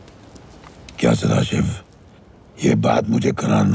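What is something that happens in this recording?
A middle-aged man shouts.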